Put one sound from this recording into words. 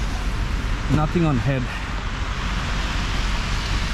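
A snow shovel scrapes across a wet pavement.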